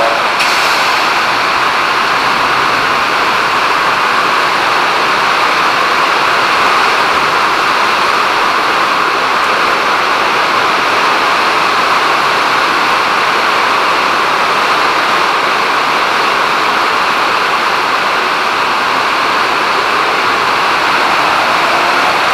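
A train rumbles and hums steadily as it runs past close by.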